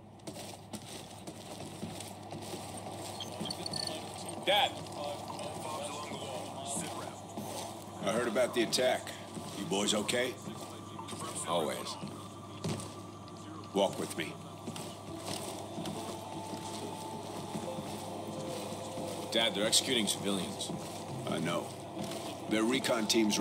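Boots thud on wooden floors and stairs.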